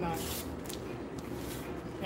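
Fabric rustles as a shirt is pulled off a board.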